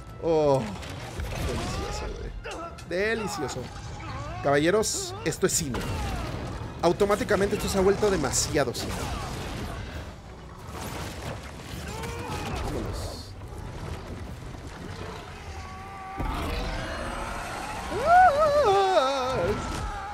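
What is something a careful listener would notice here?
A reptilian creature roars and snarls loudly.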